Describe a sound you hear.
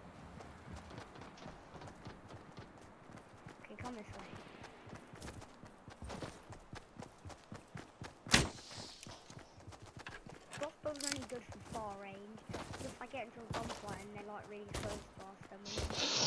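Quick footsteps run over ground.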